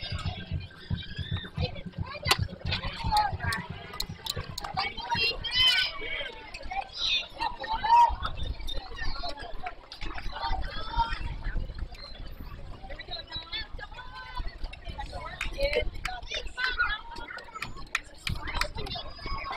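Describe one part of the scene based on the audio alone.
Young players and adults call out and chatter around an open outdoor ball field.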